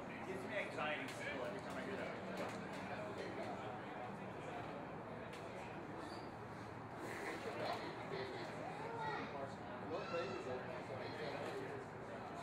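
Men talk casually at a distance outdoors.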